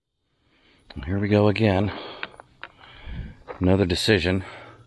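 A man speaks close to the microphone outdoors.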